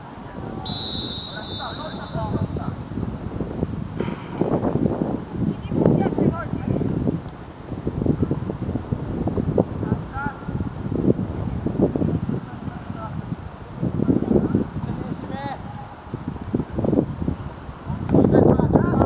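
Young players shout and call out across an open outdoor field.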